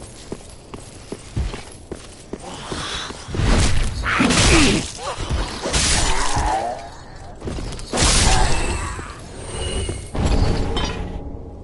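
Armoured footsteps clank steadily on a stone walkway.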